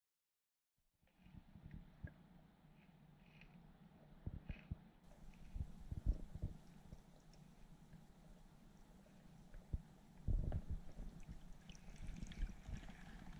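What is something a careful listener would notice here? Water churns and rumbles, heard from underwater.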